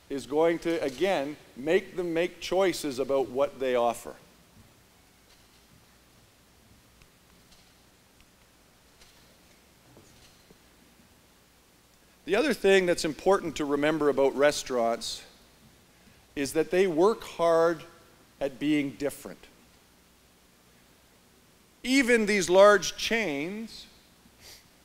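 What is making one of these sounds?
A middle-aged man speaks calmly through a microphone, with pauses, in a large echoing hall.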